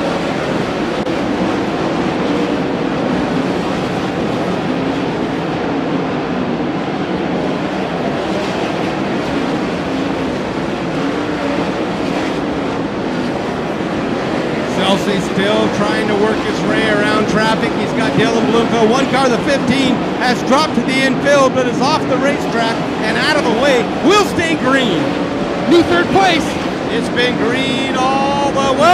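Racing car engines roar loudly.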